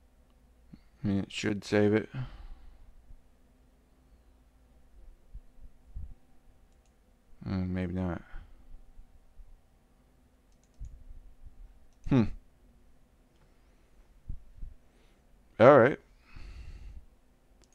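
A man speaks in short, calm phrases close to a microphone.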